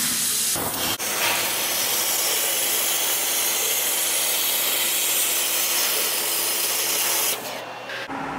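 A laser cutter hisses steadily as it cuts through metal.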